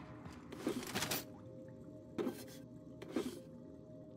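A metal locker door creaks open with a clank.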